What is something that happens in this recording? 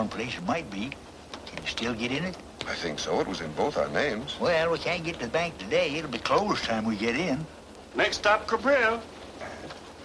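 An elderly man speaks with animation.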